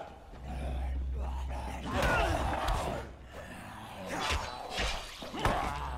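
A metal pipe swings and thuds heavily against a body.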